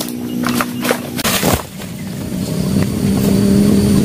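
A heavy fruit bunch thuds onto the ground.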